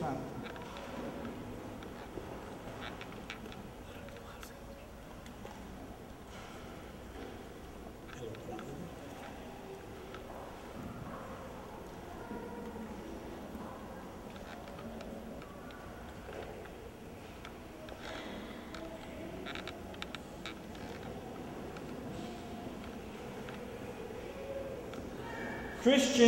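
A middle-aged man speaks calmly in a large echoing hall.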